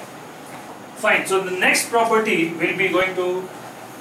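A man speaks calmly, as if explaining something.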